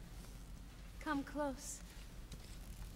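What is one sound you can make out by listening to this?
A young woman sings.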